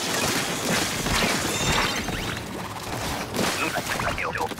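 Ink guns splatter and spray in rapid bursts.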